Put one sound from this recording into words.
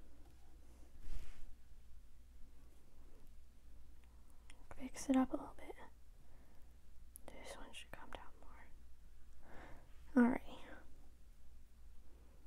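A paintbrush strokes across canvas.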